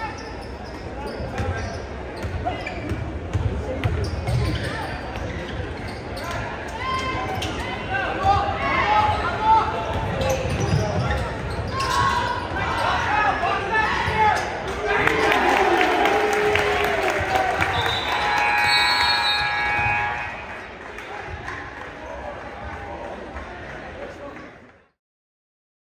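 A crowd shouts and cheers in a large echoing gym.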